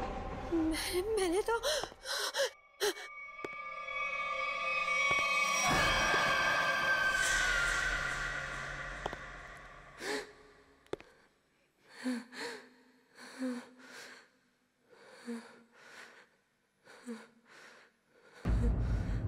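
A woman speaks anxiously into a phone, close by.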